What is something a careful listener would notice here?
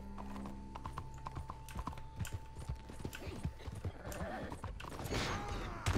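Horse hooves clop on a hard road.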